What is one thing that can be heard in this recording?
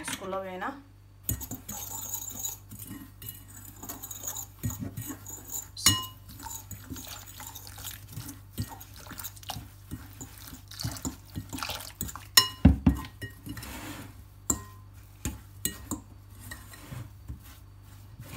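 A metal fork scrapes and taps against a glass bowl.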